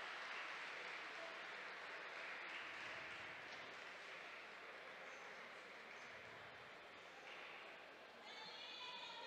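A crowd cheers and murmurs in a large echoing arena.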